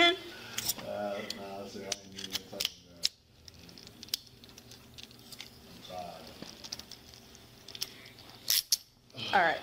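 Handcuffs click and rattle as they are unlocked.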